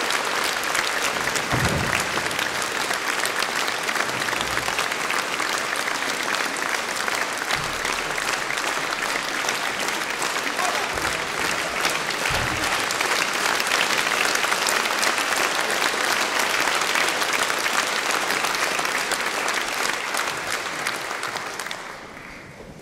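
An audience applauds loudly in a large echoing hall, then the clapping fades away.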